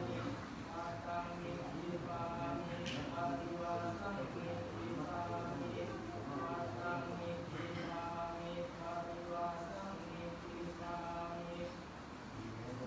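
A large group of men chant together in steady, low voices.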